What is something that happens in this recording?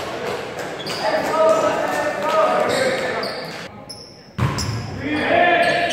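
Young players shout and cheer in a large echoing gym.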